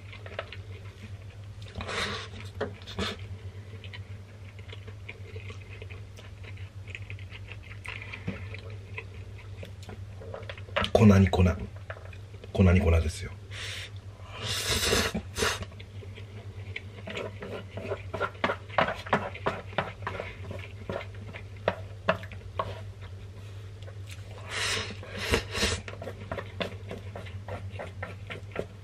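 A man chews food with wet, smacking sounds.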